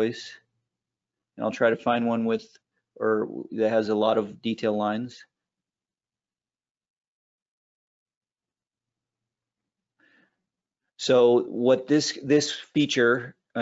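A man speaks calmly and clearly into a close microphone, with pauses.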